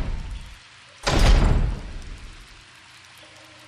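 A heavy metal gate clangs shut.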